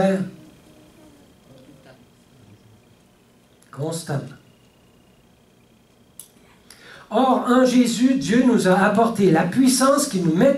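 An older man speaks calmly through a headset microphone, with pauses.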